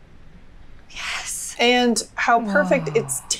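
A young woman exclaims in surprise.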